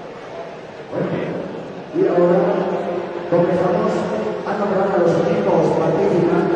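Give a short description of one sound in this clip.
A young woman speaks in a large echoing hall.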